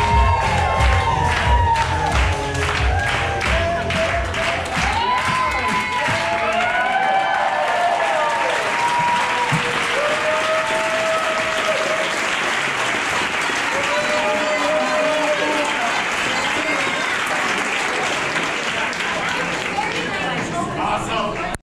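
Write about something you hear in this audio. A crowd cheers and whoops loudly in a large room.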